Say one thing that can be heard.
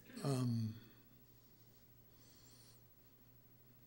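A middle-aged man speaks briefly and calmly through a microphone.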